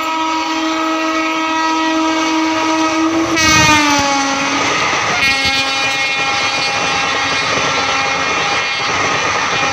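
A train horn blares loudly and drops in pitch as the locomotive rushes past.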